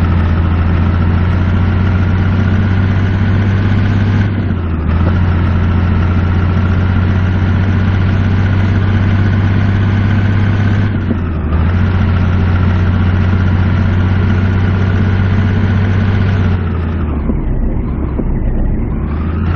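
A truck's diesel engine drones loudly and steadily, dipping briefly as the gears shift.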